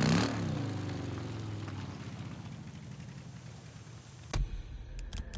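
A motorcycle engine rumbles as the bike rolls along a road.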